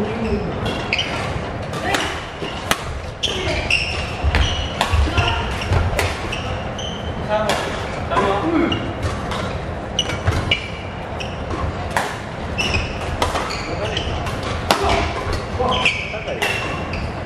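Badminton rackets strike a shuttlecock in a rally.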